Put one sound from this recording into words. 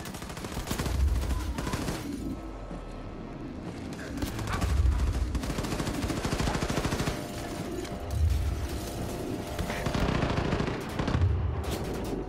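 Heavy explosions boom at intervals.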